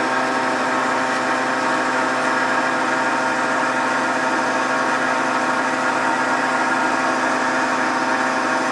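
A hydraulic press motor hums steadily and loudly.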